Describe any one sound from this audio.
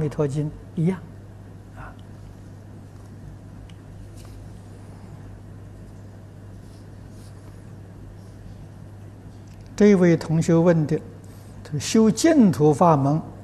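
An elderly man speaks calmly and slowly into a microphone, close by.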